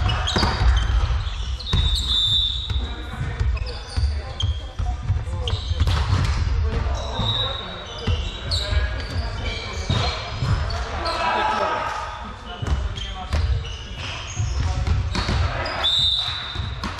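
A volleyball is struck and thuds on the floor.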